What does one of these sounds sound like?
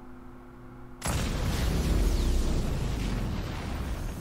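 Glass shatters with a loud burst.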